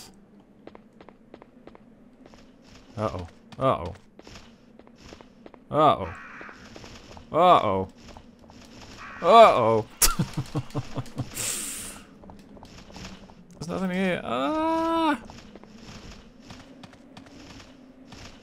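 Footsteps run quickly across hard stone.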